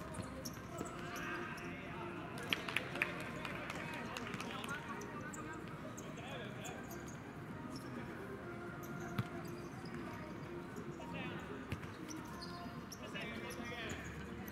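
Young men shout to each other across an open outdoor court.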